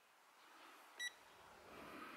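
A handheld meter beeps once.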